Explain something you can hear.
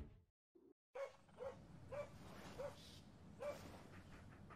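A dog pants and yaps close by.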